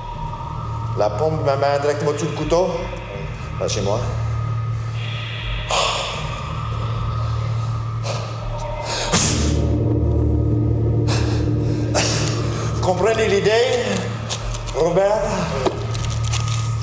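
A man speaks loudly in a large hall.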